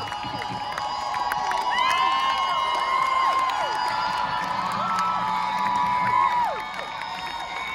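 A large crowd cheers and screams loudly outdoors.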